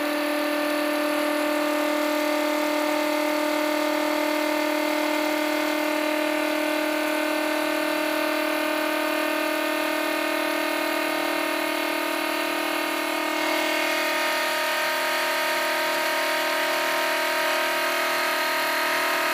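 A small electric motor spins with a steady, humming whine that creeps slightly higher in pitch.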